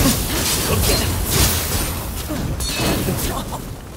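Flames whoosh with a sword swing.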